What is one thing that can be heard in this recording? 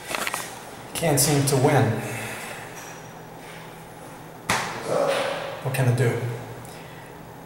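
A young man speaks close by in a small echoing room.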